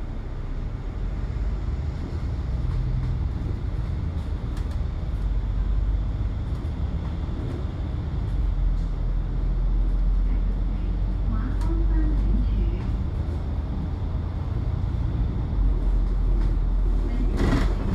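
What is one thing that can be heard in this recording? A bus engine rumbles steadily from close by.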